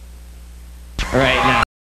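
A young man speaks into a microphone to an audience.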